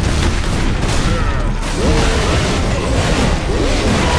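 Heavy guns fire in loud, rapid bursts.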